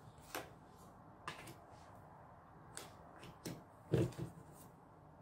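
Playing cards shuffle with soft clicks and taps.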